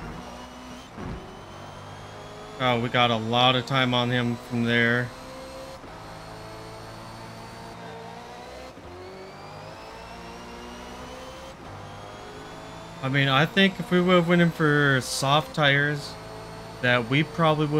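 A racing car engine roars at high speed, climbing in pitch through gear changes.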